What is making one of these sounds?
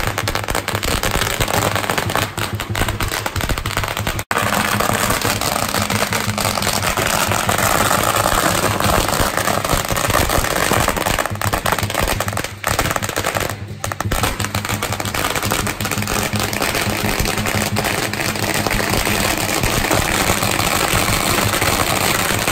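Firecrackers crackle and pop in rapid bursts outdoors.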